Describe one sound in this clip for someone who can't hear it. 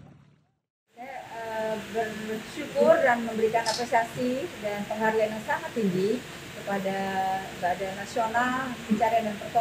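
A woman speaks calmly into a nearby microphone.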